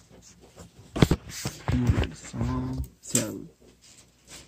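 A phone rubs and knocks as it is handled.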